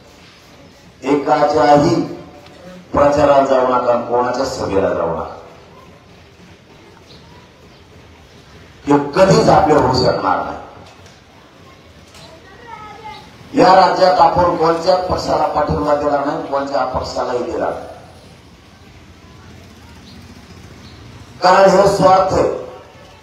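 A young man speaks forcefully into a microphone over a loudspeaker, in short bursts with pauses, outdoors.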